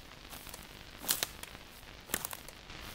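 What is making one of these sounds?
Small knobs on a device click and rattle as they are turned.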